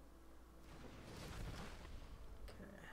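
A game sound effect whooshes and rumbles.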